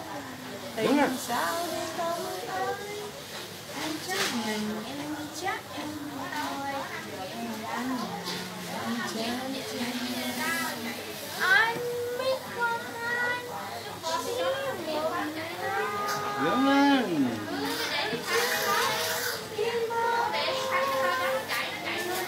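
An older woman talks and laughs softly nearby.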